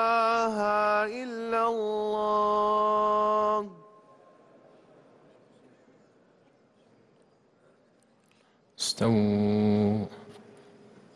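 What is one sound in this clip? A man chants in a long, drawn-out voice through loudspeakers in a large echoing hall.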